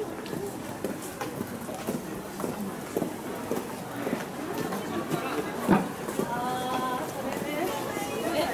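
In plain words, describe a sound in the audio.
A young woman and a young man talk quietly nearby.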